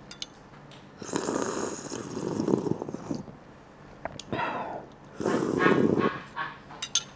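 A young man slurps a drink loudly.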